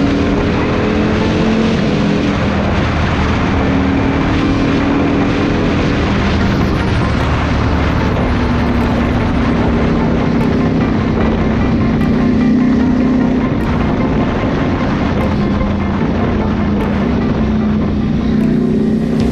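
A motorcycle engine hums and revs steadily up close.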